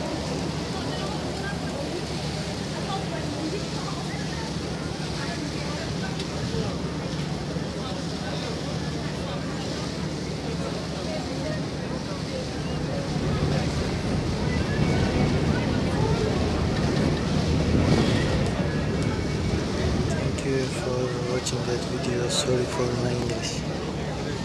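Water splashes and churns against a moving boat's hull.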